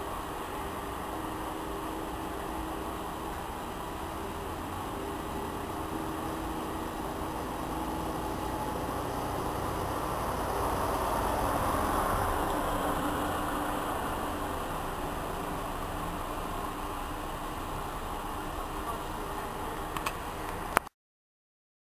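A bus engine hums as the bus approaches and passes close by.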